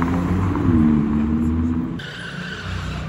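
A sports car engine rumbles and revs nearby.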